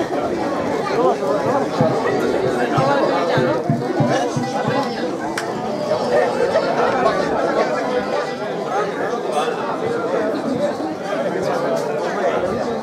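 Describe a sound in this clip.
A group of men sing together outdoors.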